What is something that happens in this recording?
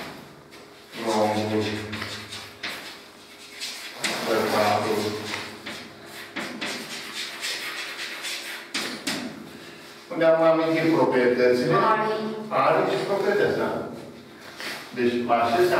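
An elderly man speaks calmly, as if teaching.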